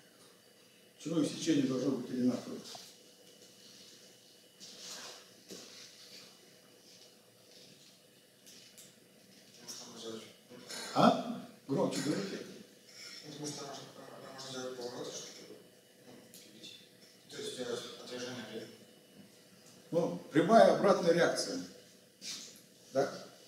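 An elderly man speaks calmly and slowly, with pauses.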